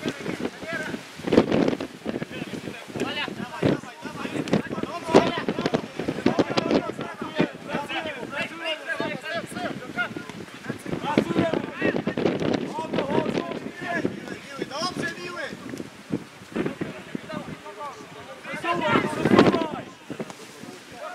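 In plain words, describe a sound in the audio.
Young men shout to each other from a distance on an open field.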